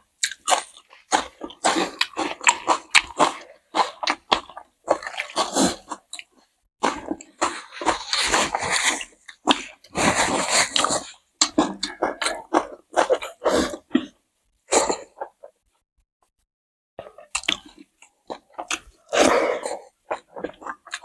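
Fingers squish and mix rice.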